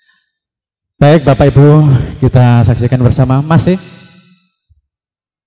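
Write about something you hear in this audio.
A man sings out loudly in a long, wavering chant.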